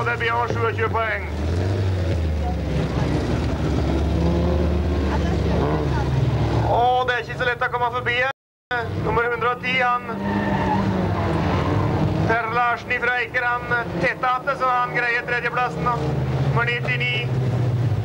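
Racing car engines roar and rev on a dirt track.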